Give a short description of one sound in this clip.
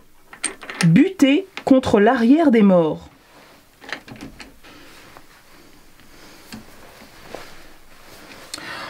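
A metal key clicks and scrapes against a lathe chuck.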